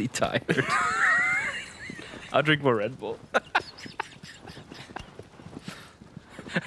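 A horse gallops with quick, thudding hoofbeats on grass.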